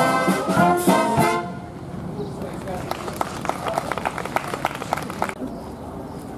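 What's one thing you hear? A brass and wind band plays a lively tune outdoors.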